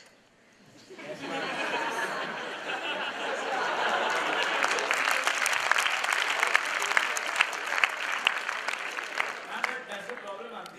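A large crowd laughs and cheers loudly.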